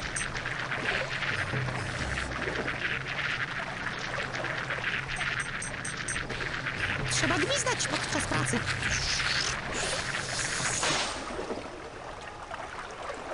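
Retro game music and sound effects play steadily.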